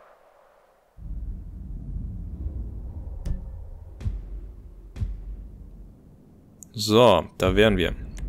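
Music with a deep, thumping bass plays.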